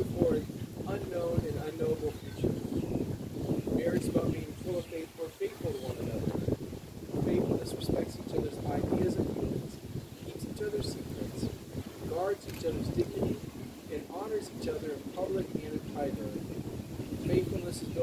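A man speaks calmly nearby, outdoors.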